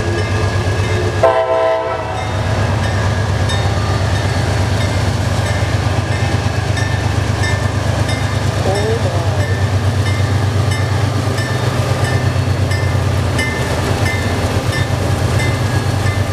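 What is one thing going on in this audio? Diesel locomotives rumble and throb steadily as they pass close by.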